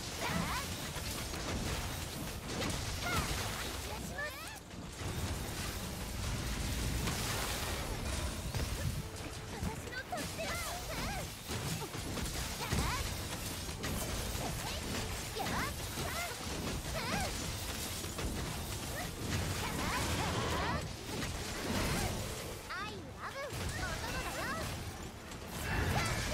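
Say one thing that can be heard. A large sword slashes and clangs against a monster's hide.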